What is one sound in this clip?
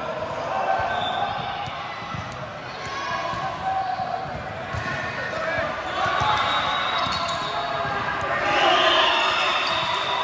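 Many voices of girls and young women chatter and call out in a large echoing gym.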